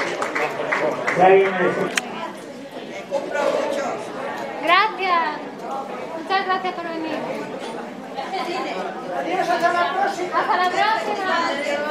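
A crowd of elderly men and women chatter loudly.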